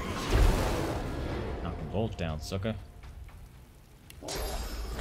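Fiery spell effects whoosh and crackle.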